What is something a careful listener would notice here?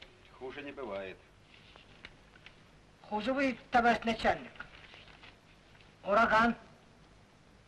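A man speaks in a low voice, close by.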